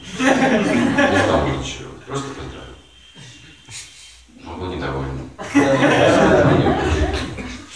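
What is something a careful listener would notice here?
An elderly man speaks calmly and clearly, close by, with pauses.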